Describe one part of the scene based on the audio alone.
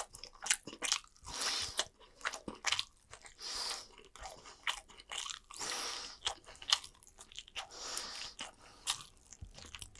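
A person chews food noisily right beside the listener.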